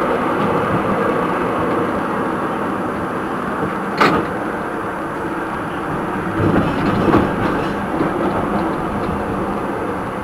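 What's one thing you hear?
A tram rumbles steadily along rails.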